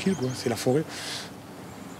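An older man speaks briefly and gruffly, close by.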